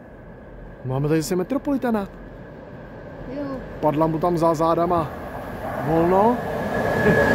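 A train horn sounds several times as a train approaches.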